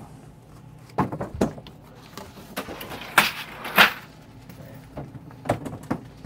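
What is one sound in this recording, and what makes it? Glass bottles clink as they are moved on shelves.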